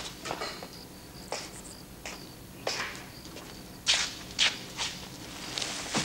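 A heavy sack thumps down.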